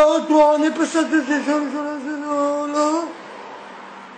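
A man sings a wavering tune close to the microphone.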